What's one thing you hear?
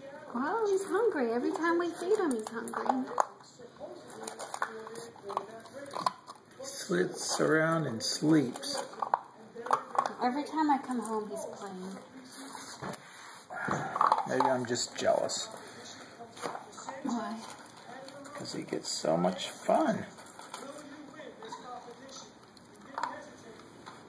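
A puppy eats noisily from a metal bowl, its food clinking against the metal.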